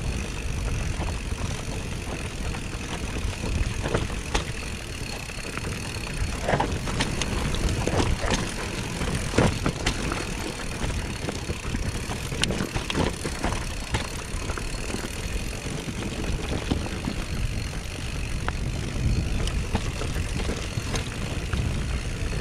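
Bicycle tyres roll and crunch over a dirt trail.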